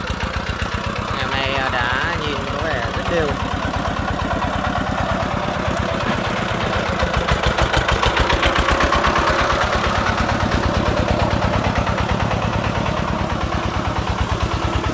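A small diesel engine chugs loudly and steadily nearby.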